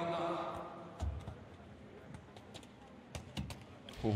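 A ball thuds repeatedly against a hard surface in a large hall.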